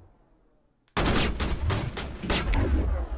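Rapid gunshots fire.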